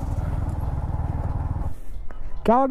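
A motorcycle engine rumbles steadily, then cuts out.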